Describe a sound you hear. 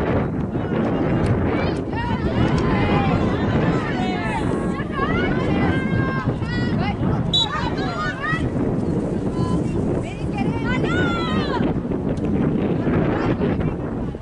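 Young women shout and call out to each other across an open field outdoors.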